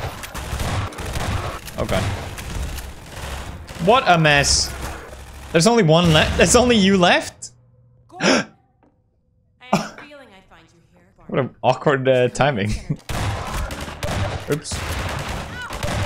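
A shotgun fires repeatedly.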